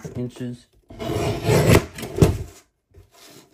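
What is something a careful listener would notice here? A paper trimmer blade slides along and slices through card.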